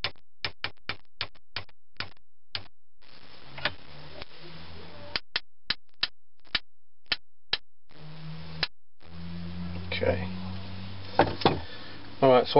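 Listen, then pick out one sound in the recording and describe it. A mallet taps sharply on wood again and again.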